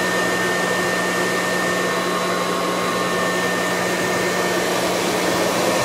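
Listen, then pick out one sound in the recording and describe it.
A vacuum cleaner motor whirs and roars steadily close by.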